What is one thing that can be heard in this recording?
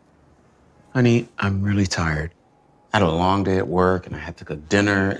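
A man answers wearily, close by.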